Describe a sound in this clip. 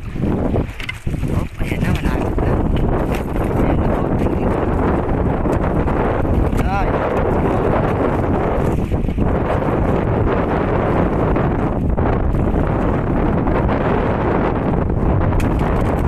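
Steady wind roars loudly outdoors.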